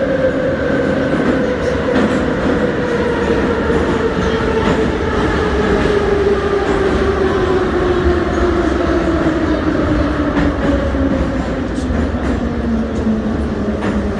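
A train rumbles loudly along the tracks.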